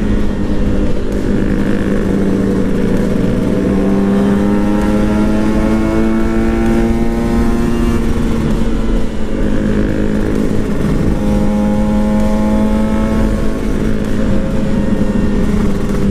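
A motorcycle engine hums steadily close by, rising and falling in pitch as it speeds up and shifts.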